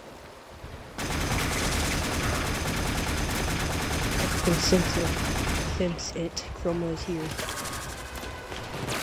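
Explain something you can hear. A laser gun fires a continuous buzzing beam.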